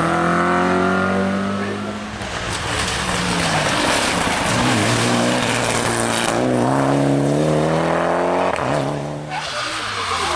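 A rally car engine roars loudly as it speeds past and shifts gears.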